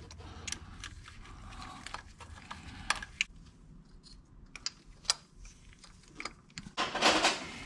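Small metal parts click and tap.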